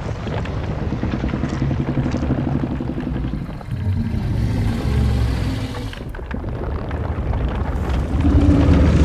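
A huge creature growls with a deep, rumbling voice.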